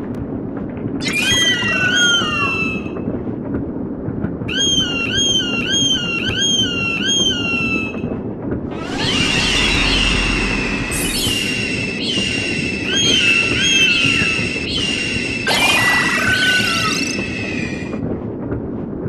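An eagle screeches again and again.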